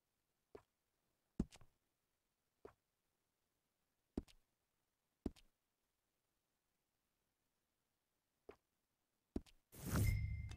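Short soft clicks sound as menu choices are made.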